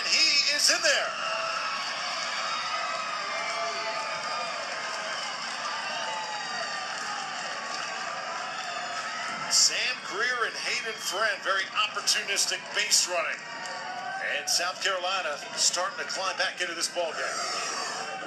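A large crowd cheers and roars outdoors.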